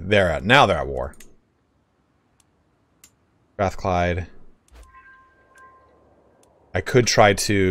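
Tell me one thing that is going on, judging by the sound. A man speaks with animation, close to a microphone.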